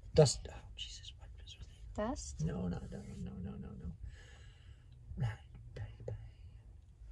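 A woman speaks close by in a relaxed, chatty way.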